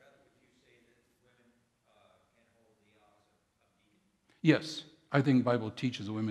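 A middle-aged man speaks through a microphone in a large echoing hall.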